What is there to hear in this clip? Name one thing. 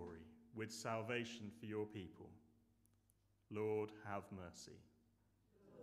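A young man speaks calmly into a microphone in an echoing room.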